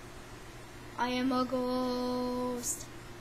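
A young girl sings a loud, held note close to the microphone.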